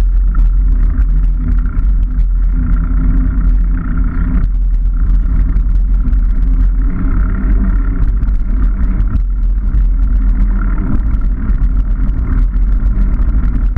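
Wind rumbles loudly against a microphone.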